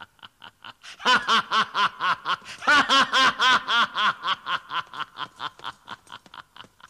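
A man laughs heartily and loudly, close by.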